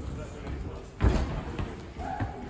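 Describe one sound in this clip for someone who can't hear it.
A climber drops and thuds onto a padded mat.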